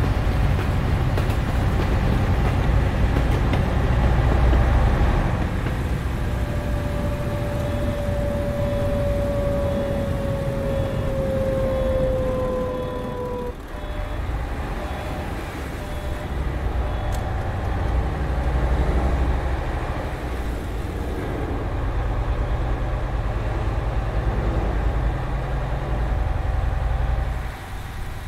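A bus engine rumbles steadily as the bus drives along a road.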